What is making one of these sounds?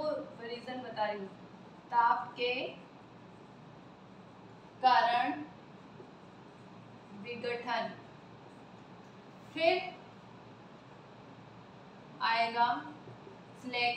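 A woman speaks calmly in short phrases with pauses, close by.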